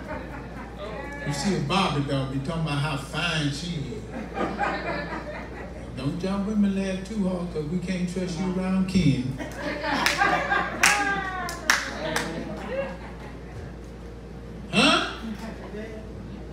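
A middle-aged man preaches with animation through a microphone and loudspeaker in an echoing room.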